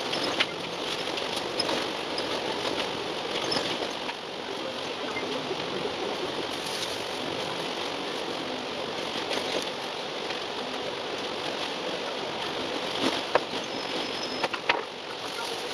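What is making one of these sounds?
Interior panels of a bus rattle and click over bumps.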